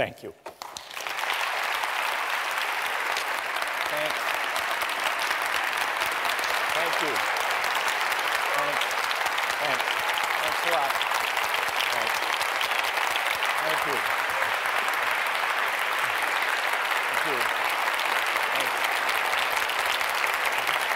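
A large audience applauds loudly in a big echoing hall.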